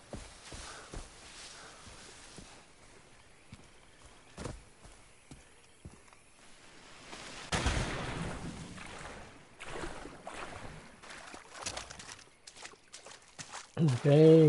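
Water rushes in a river nearby.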